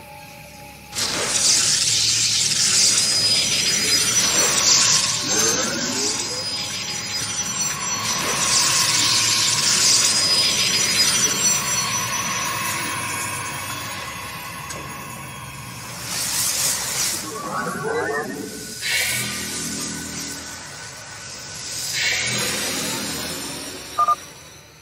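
Shimmering, whooshing sci-fi energy sounds swell and fade as units teleport in a video game.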